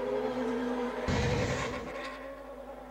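A racing car roars past close by.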